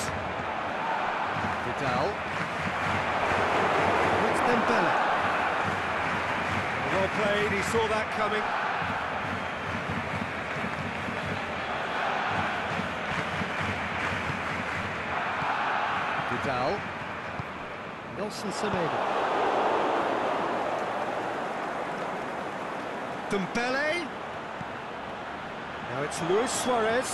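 A stadium crowd roars and murmurs steadily throughout.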